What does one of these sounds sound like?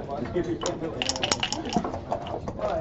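Dice rattle and clatter onto a wooden board.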